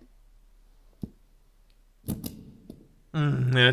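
A rubber stamp thuds down onto paper.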